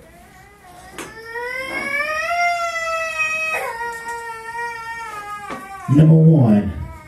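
A man sings a long, drawn-out line through a microphone.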